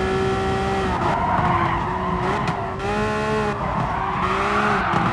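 Tyres squeal as a car brakes into a corner.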